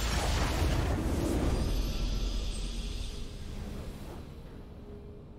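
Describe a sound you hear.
A bright, swelling victory fanfare rings out and fades away.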